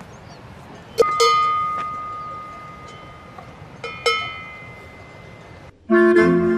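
A cowbell clangs close by.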